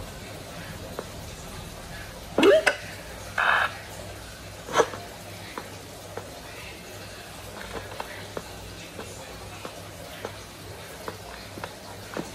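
Fingers tap softly on a touchscreen.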